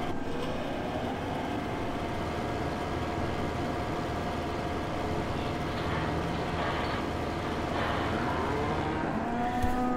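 A feed mixer whirs while blowing out straw.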